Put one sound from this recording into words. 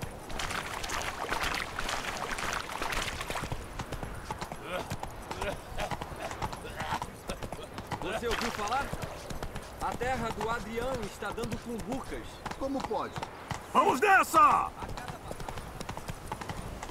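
A horse trots steadily on a dirt path.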